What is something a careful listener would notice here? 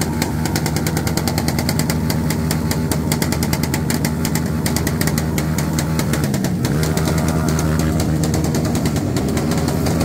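A motorcycle's rear tyre screeches as it spins on the pavement.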